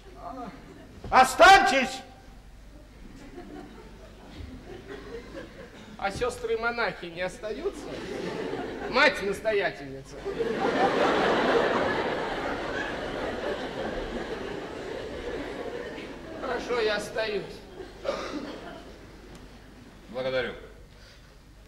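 A middle-aged man speaks loudly and theatrically on a stage.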